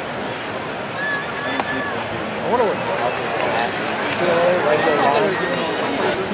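Fans in a crowd shout and whistle.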